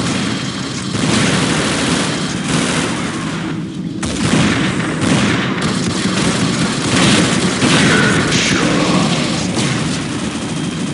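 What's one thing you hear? A sniper rifle fires sharp shots in a video game.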